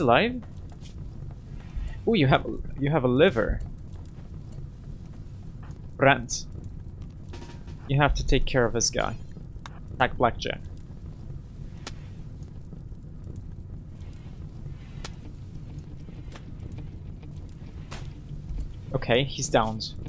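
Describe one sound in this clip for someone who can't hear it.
A fire crackles and roars steadily.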